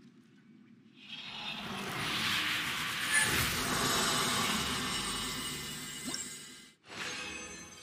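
A magical whooshing swell builds and rushes, then cuts off.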